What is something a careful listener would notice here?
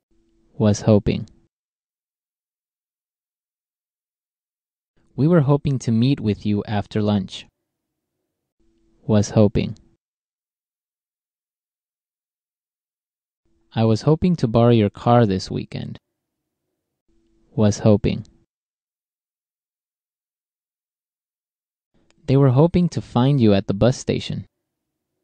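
A man reads out short phrases calmly and clearly into a close microphone, with pauses between them.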